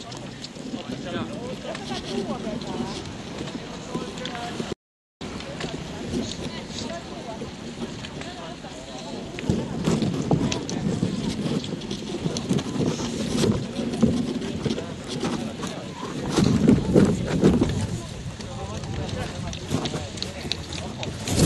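A crowd of people chatters and calls out outdoors at a distance.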